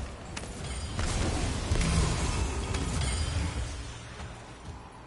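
A blade slashes and crackles with fire.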